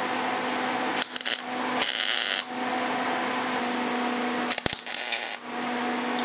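An arc welder crackles and buzzes in short bursts.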